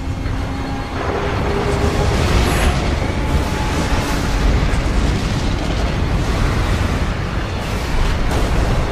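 Rain pours down steadily outdoors.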